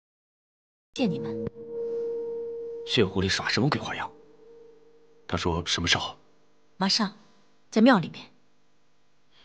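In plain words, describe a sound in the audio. A man speaks tensely at close range.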